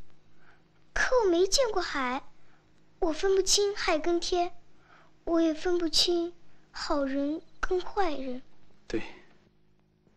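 A young girl speaks softly and slowly, close by.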